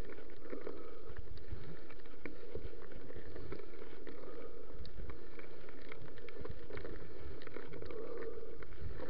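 A bicycle frame rattles and clicks over bumps.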